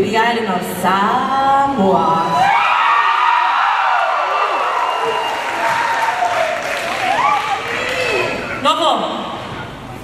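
A crowd cheers and whoops loudly in a large echoing hall.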